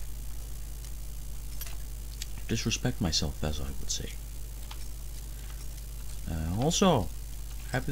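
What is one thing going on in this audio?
A lock pick scrapes and clicks softly inside a metal lock.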